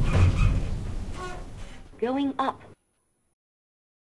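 An elevator door slides open.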